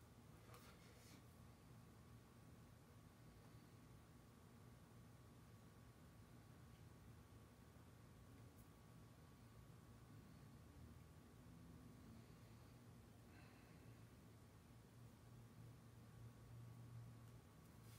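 Paint is stirred in a metal can with a stick.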